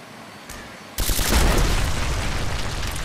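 A small drone explodes with a bang.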